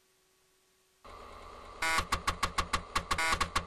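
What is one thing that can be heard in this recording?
A computer game plays a harsh electronic tone that pulses rapidly.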